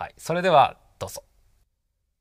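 A young man speaks briefly and cheerfully.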